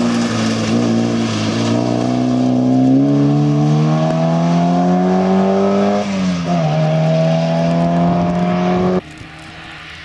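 A four-cylinder rally car accelerates hard away and shifts up a gear.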